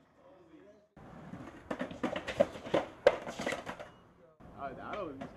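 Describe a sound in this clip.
A skateboard clatters onto stone steps.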